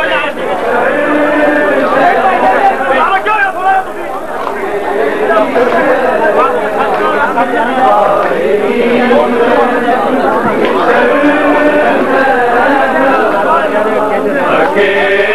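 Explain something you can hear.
A large crowd of men shouts and chants loudly and densely.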